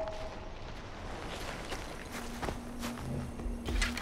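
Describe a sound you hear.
Footsteps crunch through dry grass and leaves.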